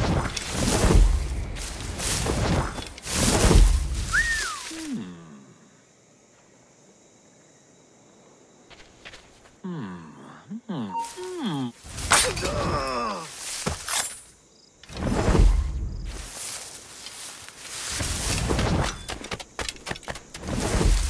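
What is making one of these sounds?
Leafy bushes rustle as someone pushes through them.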